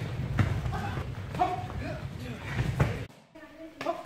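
A body thuds onto a padded floor.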